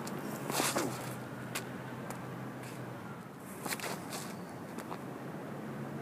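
Shoes scuff and tap on pavement.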